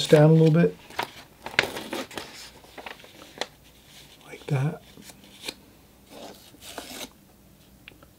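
A sheet of paper rustles and slides on a table.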